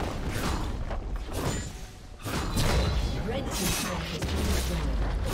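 Magic blasts whoosh and crackle in a game battle.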